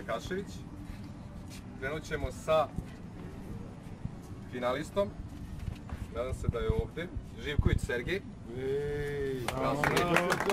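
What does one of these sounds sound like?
A man speaks calmly to a small crowd outdoors.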